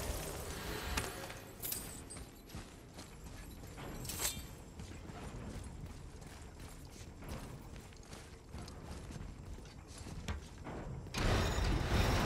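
Heavy footsteps thud on a stone floor.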